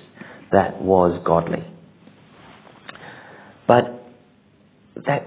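A middle-aged man speaks calmly into a close microphone, in a slightly echoing room.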